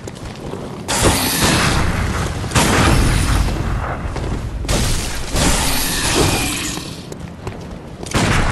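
Weapons strike in a close fight.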